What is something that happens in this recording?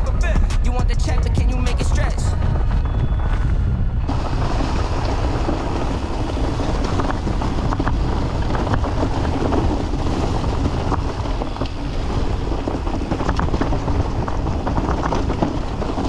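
Wind buffets the microphone with a steady low rumble.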